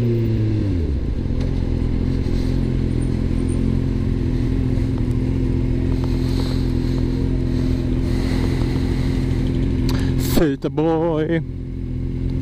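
A motorcycle engine idles steadily.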